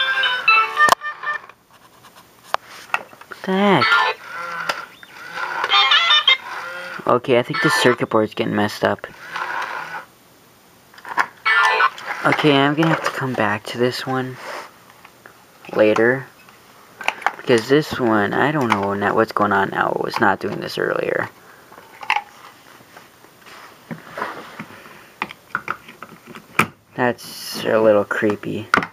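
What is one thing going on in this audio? Toy figures play a tinny jazzy tune through a small speaker.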